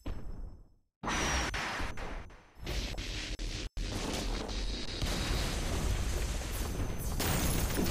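A huge energy blast explodes with a deep rumbling boom.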